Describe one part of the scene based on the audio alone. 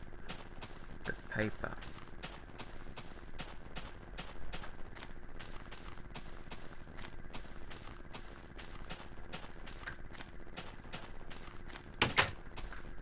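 Footsteps tread steadily on grass.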